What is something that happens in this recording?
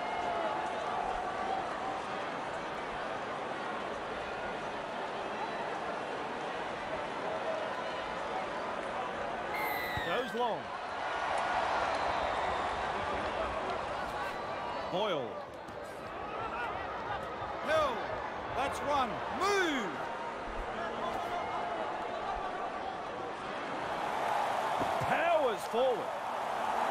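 A large stadium crowd murmurs and cheers steadily, swelling at times.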